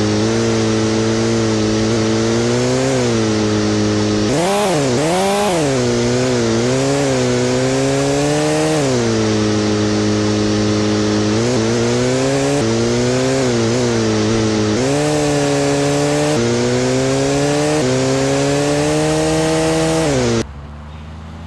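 A motorbike engine drones loudly and revs up and down.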